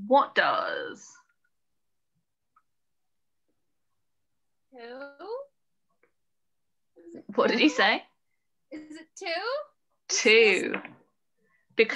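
A woman speaks calmly into a microphone, in short phrases with pauses.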